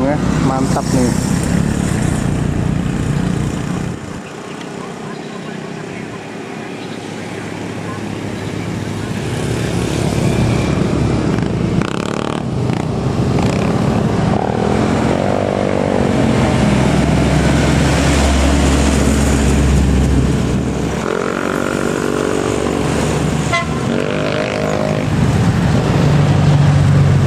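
Motorcycle engines buzz past close by.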